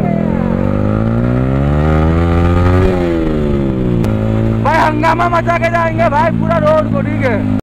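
A motorcycle engine drones close by, revving up and then easing off.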